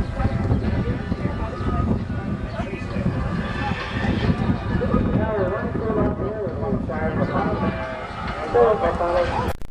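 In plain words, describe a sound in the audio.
A horse's hooves thud softly on sand as it canters.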